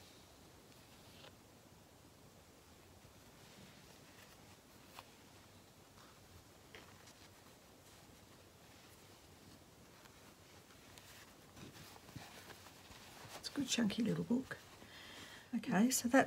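Fabric pages rustle softly as they are turned by hand.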